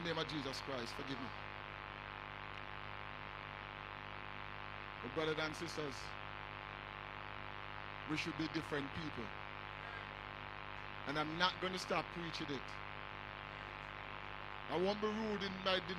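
An elderly man preaches with emphasis through a microphone, in short bursts with pauses.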